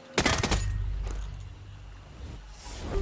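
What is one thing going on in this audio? A rifle fires once with a deep, booming echo.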